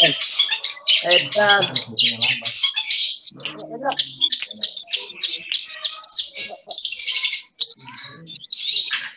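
Caged songbirds chirp and trill loudly in quick, busy bursts.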